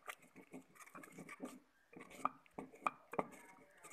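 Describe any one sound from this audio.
A wooden stick scrapes and knocks against a metal pot.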